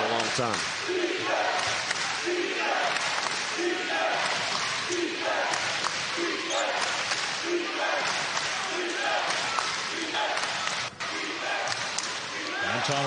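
A large crowd chants in a steady rhythm in an echoing arena.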